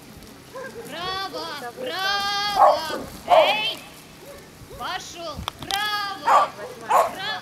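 Sheep bleat loudly, several at once.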